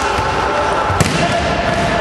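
A ball thuds loudly as it is kicked.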